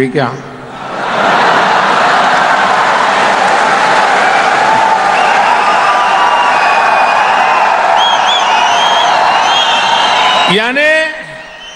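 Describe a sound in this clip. A large crowd cheers and shouts loudly in a big open space.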